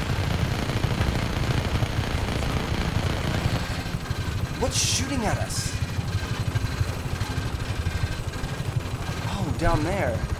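A helicopter rotor thumps steadily.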